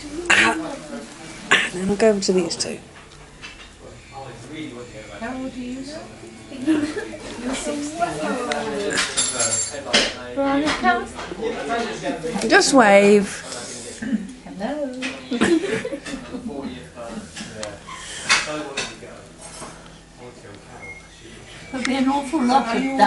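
Several people talk and laugh loudly together close by.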